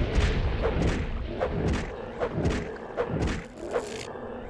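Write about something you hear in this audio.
A sword slashes and strikes a creature with heavy blows.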